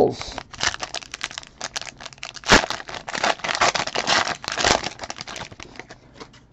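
A foil wrapper crinkles and rustles as it is torn open.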